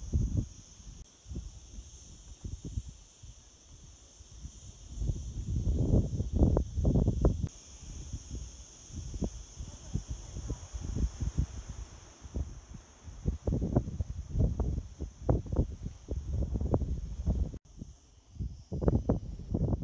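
Wind gusts and rumbles outdoors in bursts.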